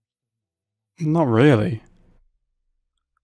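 A young man speaks briefly into a close microphone.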